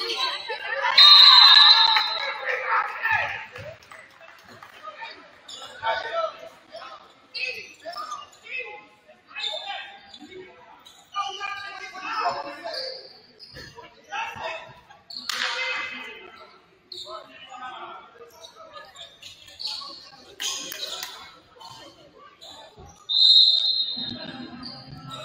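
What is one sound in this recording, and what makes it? A referee's whistle blows sharply in an echoing gym.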